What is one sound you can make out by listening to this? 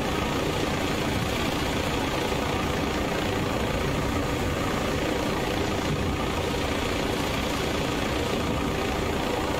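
Wind roars loudly and steadily.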